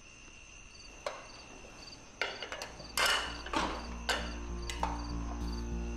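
Ceramic lids and a spoon clink against serving dishes.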